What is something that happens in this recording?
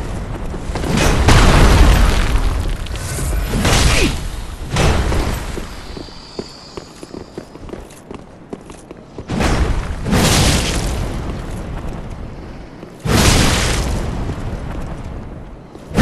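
Heavy blows and weapon swings crash and whoosh in loud bursts.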